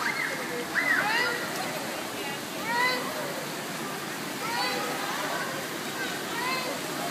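Children shout and squeal in a large echoing pool hall.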